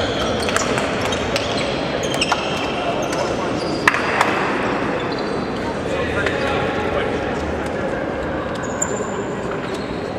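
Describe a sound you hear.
Young men talk over one another in a huddle.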